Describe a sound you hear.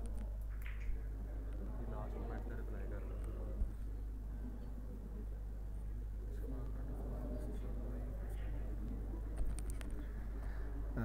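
People murmur quietly in the background.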